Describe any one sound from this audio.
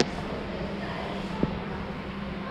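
A hand bumps and rubs against a phone close up.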